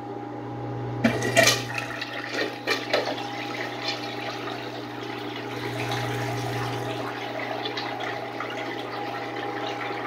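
Water rushes and swirls loudly as a toilet flushes.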